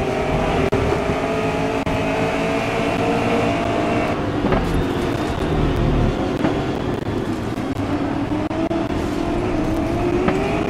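A racing car engine roars at high revs, with its pitch shifting as the gears change.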